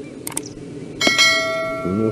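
A dart thuds into a board.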